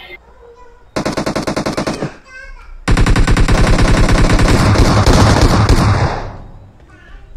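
A rifle fires rapid bursts of shots, loud and close.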